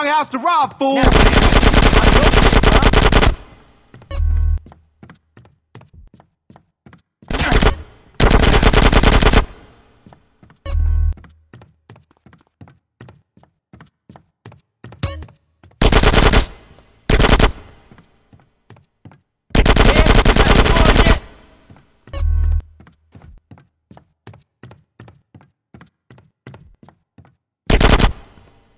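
Submachine gun fire rattles in rapid bursts.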